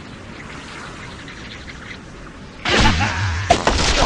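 A game's catapult launches with a stretchy twang.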